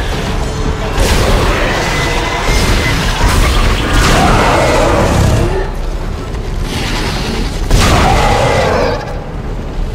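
A futuristic weapon fires in sharp, crackling bursts.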